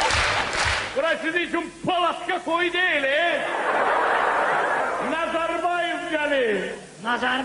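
A man sings through a microphone.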